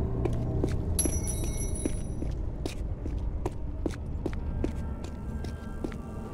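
Footsteps run quickly over a stone floor.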